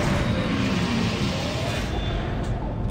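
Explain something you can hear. A heavy metal door slides open with a hiss and a mechanical whir.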